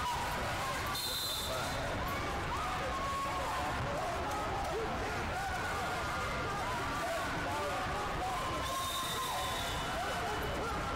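A referee blows a whistle in short shrill blasts.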